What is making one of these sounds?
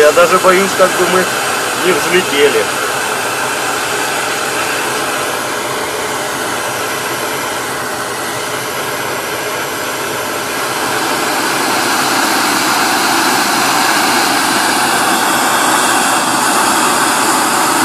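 A gas stove burner hisses steadily, growing louder.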